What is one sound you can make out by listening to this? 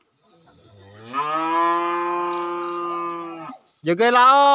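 A bull bellows loudly.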